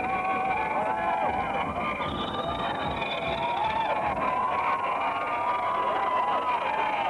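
Techno music plays from loudspeakers on a parade truck outdoors.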